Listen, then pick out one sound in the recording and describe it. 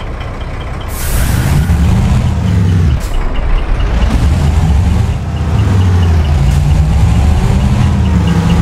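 A truck engine revs up and down loudly as the truck pulls away.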